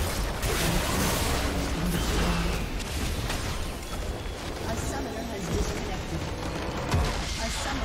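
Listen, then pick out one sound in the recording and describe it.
Game spell effects crackle and boom in a busy fight.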